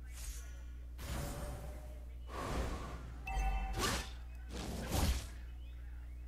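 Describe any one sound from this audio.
Video game attacks hit with sharp whooshing bursts.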